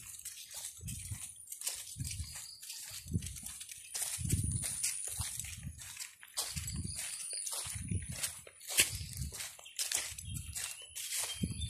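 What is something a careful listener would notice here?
Footsteps crunch and rustle through dry leaves at a brisk pace.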